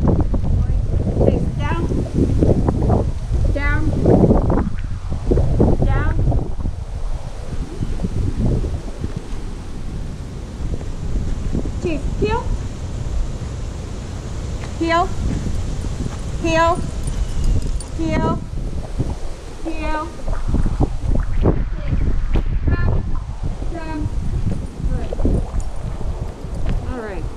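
A man gives commands to a dog at a distance outdoors.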